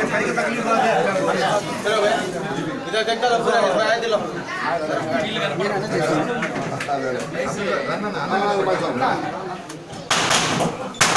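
Several men talk over each other nearby.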